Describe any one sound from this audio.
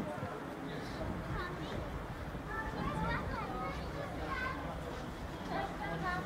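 Men and women chatter in a crowd outdoors.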